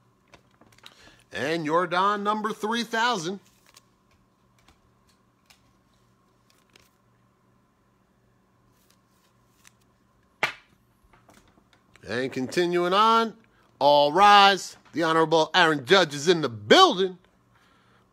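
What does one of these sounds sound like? Trading cards slide and rustle as a hand picks them up.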